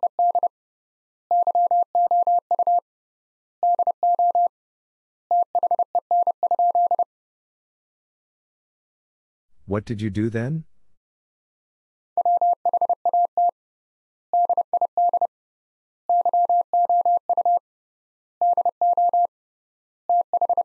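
A Morse code key sends quick, steady beeps in short bursts.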